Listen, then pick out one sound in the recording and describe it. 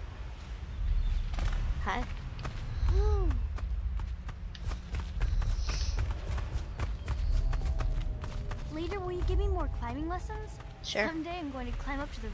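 Quick footsteps crunch on gravel.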